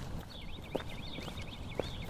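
Shoes step on asphalt.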